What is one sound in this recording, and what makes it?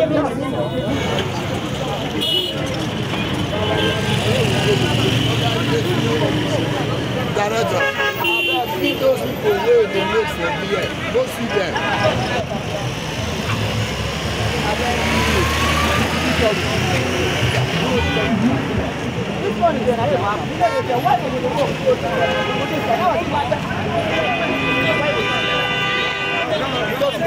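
A crowd of men talk and shout outdoors at a busy street.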